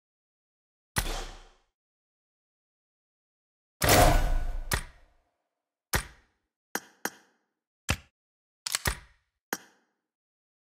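Short game menu clicks and chimes sound now and then.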